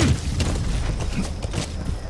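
Horse hooves gallop on dirt.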